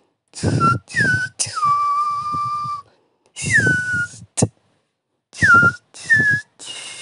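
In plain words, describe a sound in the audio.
A young man beatboxes in short bursts of bass thumps and whistling tones, heard through a microphone over an online call.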